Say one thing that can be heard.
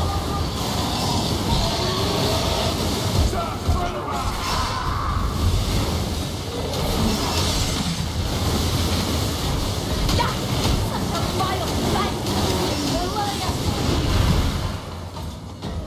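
A magic staff roars, shooting a steady stream of fire.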